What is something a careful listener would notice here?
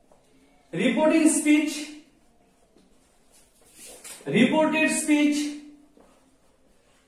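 A young man speaks clearly and slowly, close by.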